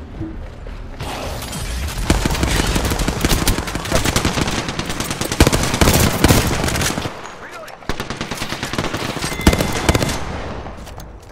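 Guns fire in rapid bursts, close by.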